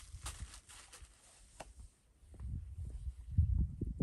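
Footsteps crunch on dry ground nearby.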